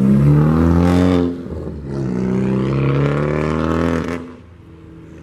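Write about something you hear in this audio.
A turbocharged four-cylinder hatchback accelerates past.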